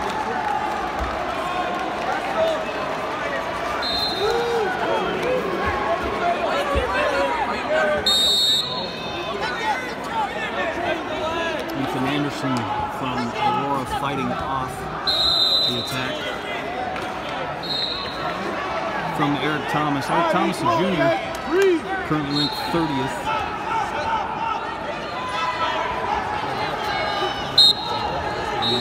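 A large crowd murmurs and shouts in a big echoing hall.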